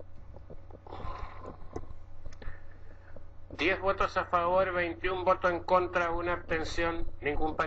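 An elderly man speaks into a microphone in a low voice.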